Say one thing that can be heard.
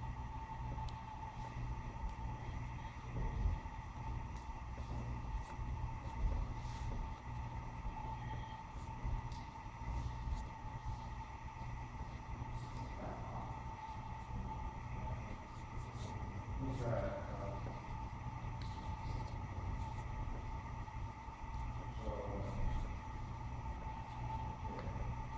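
Hands slap against arms.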